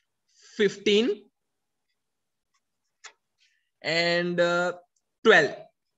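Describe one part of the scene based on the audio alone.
A woman speaks in drawn-out words over an online call.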